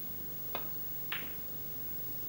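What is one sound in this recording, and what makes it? Snooker balls knock together with a click.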